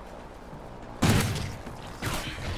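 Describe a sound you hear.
A grenade explodes with a heavy boom.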